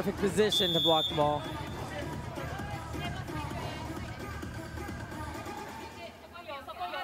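Young women shout and cheer excitedly.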